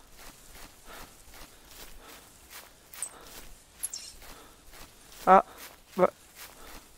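Footsteps swish steadily through dry grass.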